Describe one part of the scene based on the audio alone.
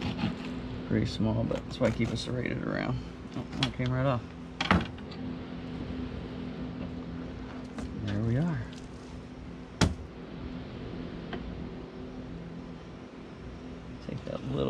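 A knife slices through fish flesh.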